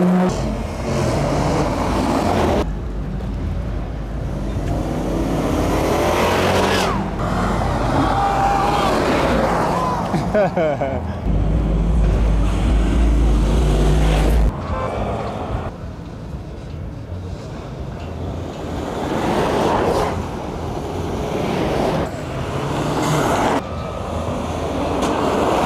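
A car engine rumbles as a car drives slowly past.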